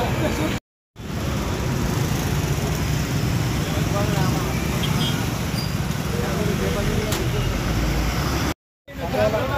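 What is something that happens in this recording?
Motorbike engines idle and rumble in traffic.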